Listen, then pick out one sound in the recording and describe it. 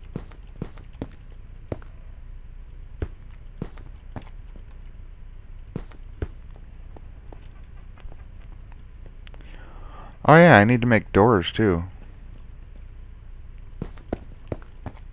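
Footsteps tap on hard stone.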